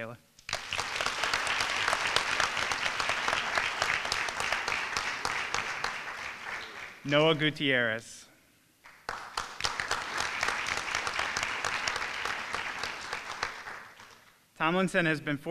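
An audience applauds in a large hall.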